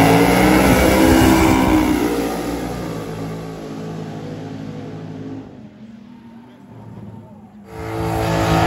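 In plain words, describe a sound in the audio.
Race car engines roar loudly as they speed away down a drag strip and fade into the distance.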